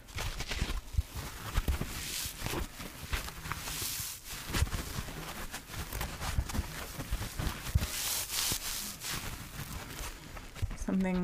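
Fingers scratch and rub a sponge up close, with crisp rustling.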